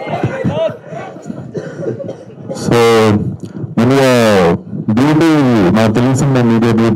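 A man speaks loudly and with animation into a microphone over loudspeakers.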